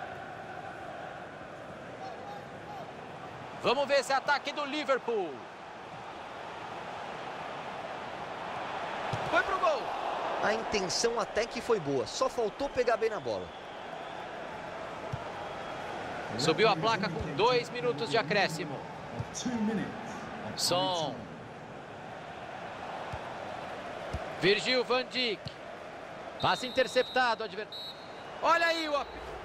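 A large stadium crowd murmurs and cheers.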